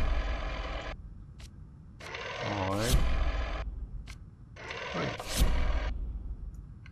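A rotary telephone dial whirs as it turns and springs back.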